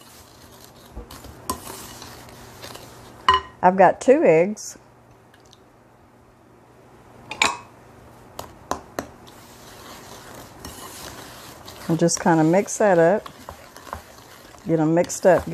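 A wooden spoon scrapes and knocks against a glass bowl while stirring a batter.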